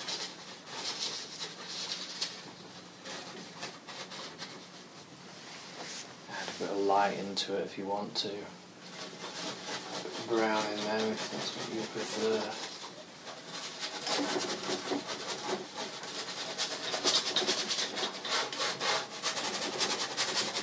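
A brush scratches lightly across canvas.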